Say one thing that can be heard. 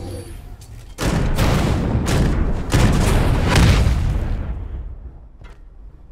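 A large explosion booms and roars, then fades.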